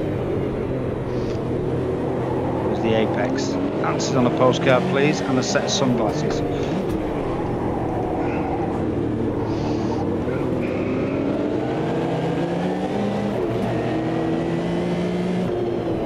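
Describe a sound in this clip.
A racing car engine roars and whines, rising and falling as it shifts gears.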